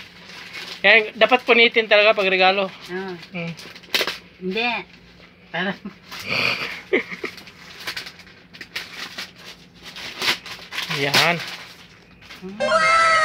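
Plastic wrapping crinkles and rustles as a parcel is unwrapped.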